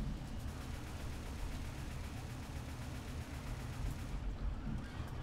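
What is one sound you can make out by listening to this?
Zombies growl and snarl up close.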